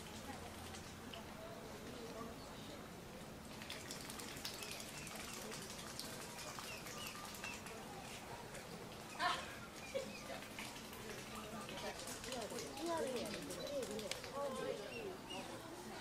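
Swans dabble and splash softly in the water.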